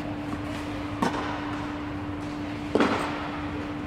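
A tennis ball is struck with a racket in a large echoing hall.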